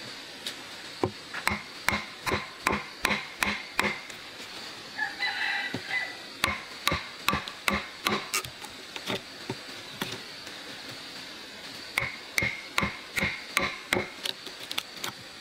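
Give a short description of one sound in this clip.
A chisel is struck again and again, chopping into wood with sharp knocks.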